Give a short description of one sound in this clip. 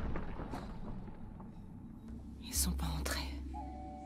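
A young woman speaks quietly and uncertainly.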